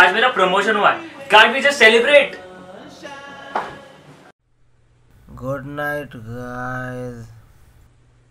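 A young man speaks loudly and angrily.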